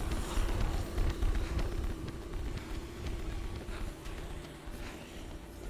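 Footsteps run quickly up stone stairs and along a hard floor.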